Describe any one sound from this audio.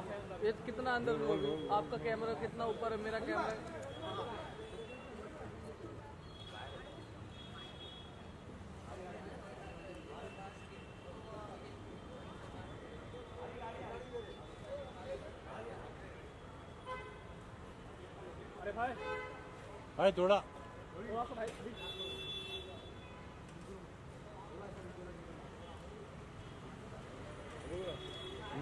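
A crowd of men and women murmur and talk nearby.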